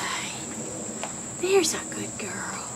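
An owl snaps its beak with sharp clicks.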